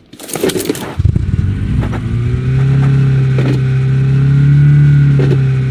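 A car engine starts and runs with a steady low rumble.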